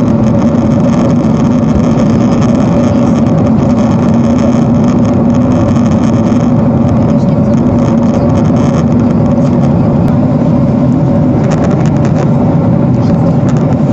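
A jet airliner's engines and airflow drone steadily, heard from inside the cabin during cruise.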